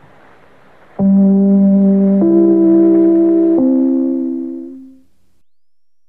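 An old radio plays a few steady musical notes.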